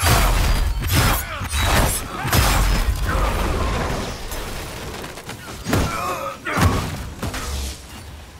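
Weapons clash and strike in quick bursts.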